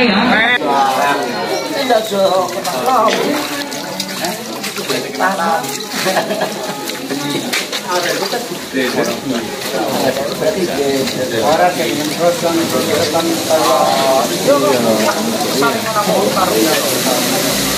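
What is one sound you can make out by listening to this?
Wet leaves squelch as hands squeeze them in a metal bowl.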